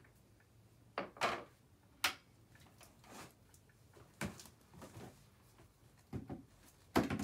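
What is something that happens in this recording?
Small objects clatter and knock as they are handled nearby.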